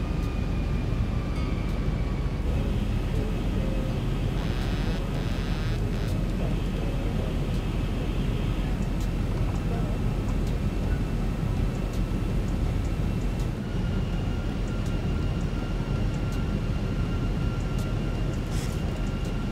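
The jet engines of an airliner rumble, heard from the cockpit.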